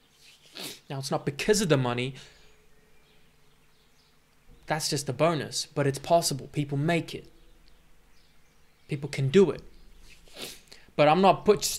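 A young man speaks calmly and close to a microphone, with pauses.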